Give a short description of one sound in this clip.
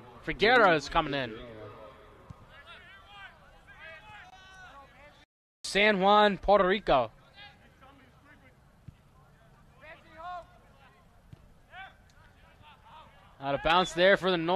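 Young men shout loudly to each other outdoors across an open field.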